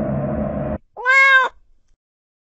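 A kitten meows once.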